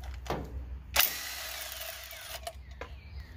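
A cordless drill whirs briefly.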